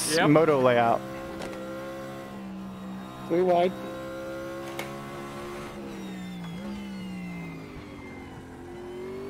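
A race car engine drones steadily, revving sharply now and then.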